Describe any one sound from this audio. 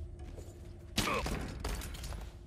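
A man is grabbed from behind in a sudden, scuffling struggle.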